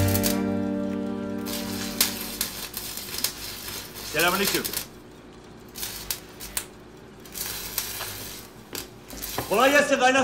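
A welding torch hisses and crackles.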